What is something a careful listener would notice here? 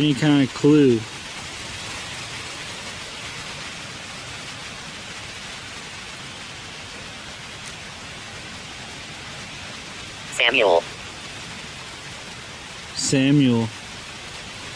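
An electronic device gives off short warbling beeps.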